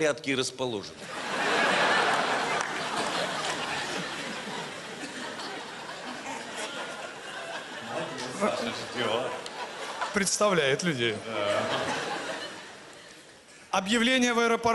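A large audience laughs and applauds in a big hall.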